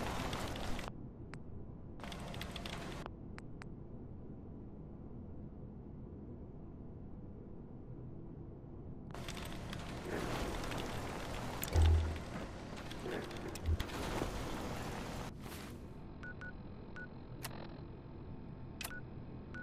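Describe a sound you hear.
Short electronic clicks tick now and then.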